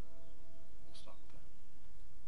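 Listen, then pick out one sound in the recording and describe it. Acoustic guitar strings ring softly.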